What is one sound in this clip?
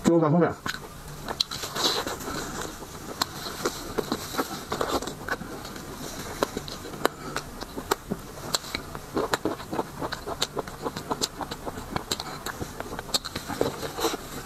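Plastic gloves rustle and crinkle close by.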